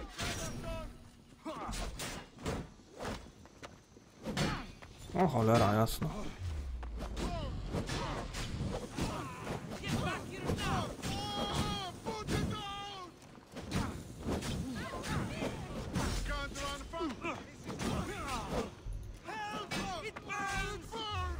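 Swords clash and strike repeatedly.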